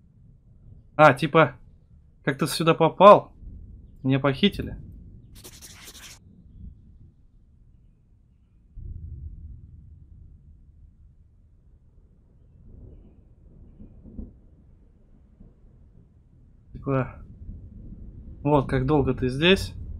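A man reads out into a close microphone with animation.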